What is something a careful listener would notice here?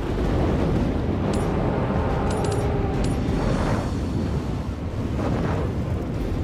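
Flames roar and crackle steadily.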